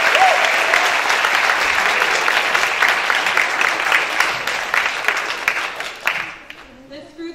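An audience applauds and cheers loudly in a large hall.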